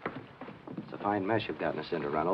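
An older man answers in a deep voice.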